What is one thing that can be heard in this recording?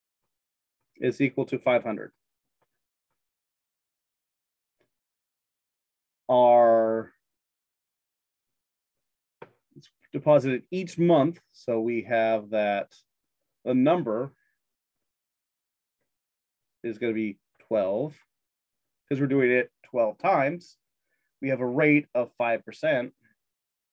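A man speaks calmly into a microphone, explaining in short phrases with pauses.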